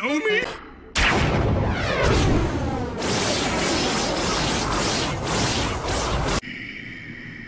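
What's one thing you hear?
A glowing whip whooshes and crackles loudly.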